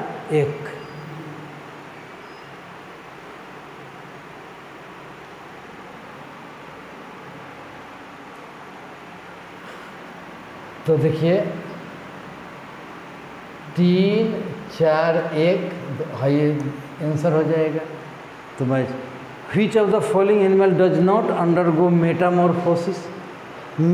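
A middle-aged man speaks calmly and explains, close to a microphone.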